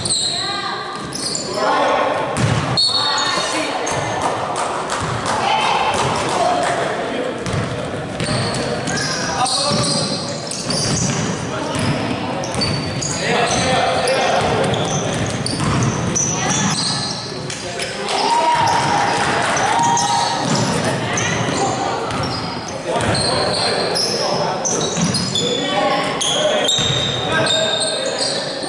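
Young men shout and call out to each other, echoing around a large hall.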